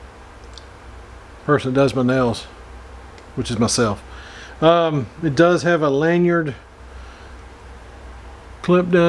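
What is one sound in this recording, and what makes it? A small metal knife blade clicks as it is handled.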